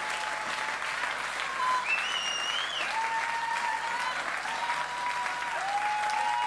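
Shrill whistles rise from a crowd.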